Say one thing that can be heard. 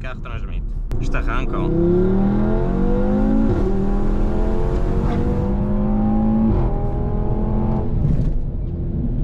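A car engine revs hard, rising in pitch through the gears.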